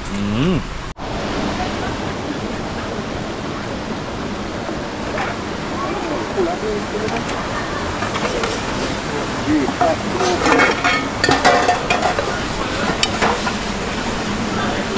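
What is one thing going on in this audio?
A shallow stream trickles and splashes steadily.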